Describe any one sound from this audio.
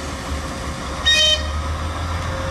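A locomotive horn gives a short blast.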